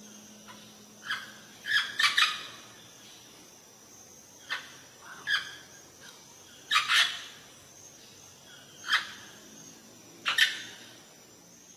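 A parrot squawks loudly in short, sharp calls.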